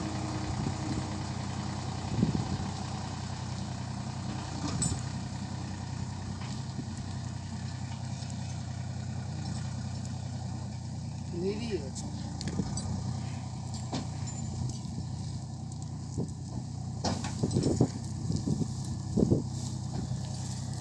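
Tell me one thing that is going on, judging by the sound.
A tractor engine rumbles steadily as it pulls a load away.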